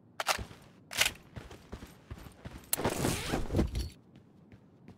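A gun's magazine is changed with metallic clicks and clacks.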